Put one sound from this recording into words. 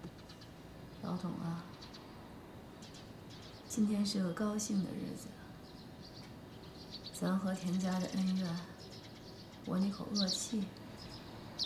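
A young woman speaks softly and slowly close by, with pauses.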